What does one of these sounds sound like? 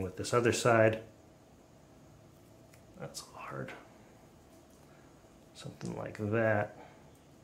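Fingers press and peel small strips of sticky tape with faint rustles.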